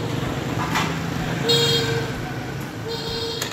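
A motorbike engine hums as it rides past close by.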